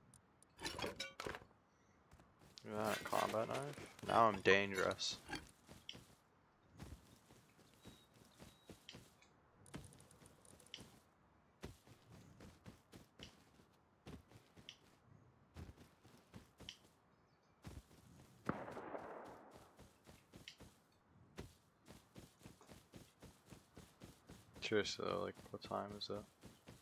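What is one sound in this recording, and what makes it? Footsteps crunch steadily through grass.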